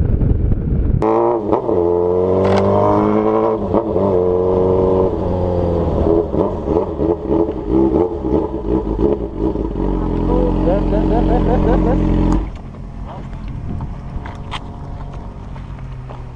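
A motorcycle engine drones, its pitch shifting as it slows, then settles to a quieter idle.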